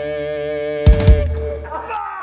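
Drums crash twice to end the song.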